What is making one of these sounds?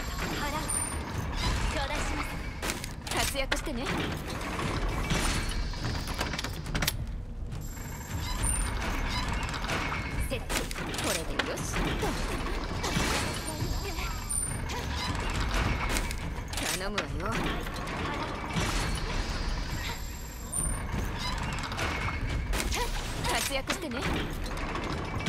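A heavy mechanism clanks and creaks.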